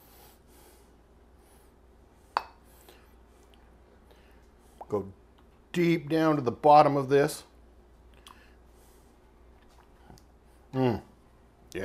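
A spoon scrapes and stirs in a pan.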